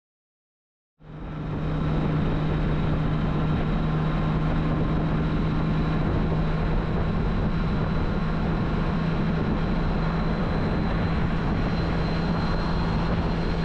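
A motorcycle engine hums steadily.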